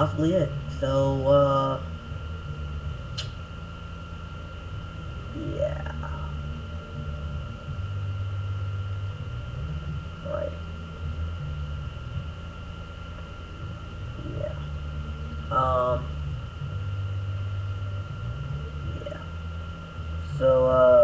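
A young woman speaks in short bursts close to the microphone, with long pauses.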